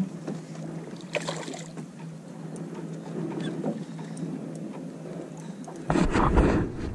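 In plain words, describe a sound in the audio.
A small outboard motor hums steadily nearby.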